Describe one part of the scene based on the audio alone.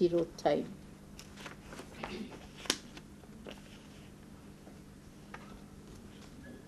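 Paper rustles and crinkles as it is handled close by.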